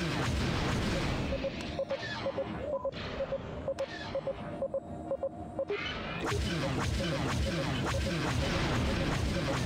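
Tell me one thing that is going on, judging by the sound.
A warning tone beeps in quick pairs, over and over.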